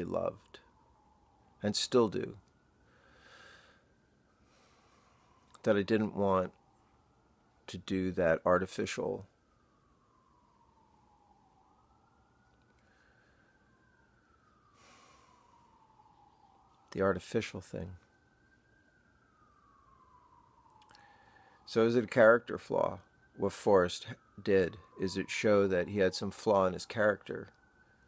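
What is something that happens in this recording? A middle-aged man speaks calmly close to the microphone, in short bursts with pauses.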